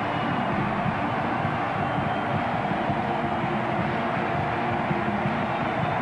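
A large crowd cheers and roars loudly in an echoing arena.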